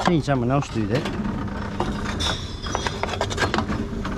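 Empty cans and cartons clatter as they are fed into a recycling machine.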